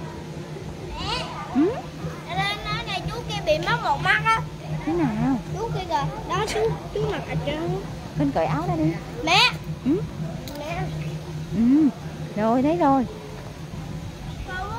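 A young boy talks and calls out excitedly close by.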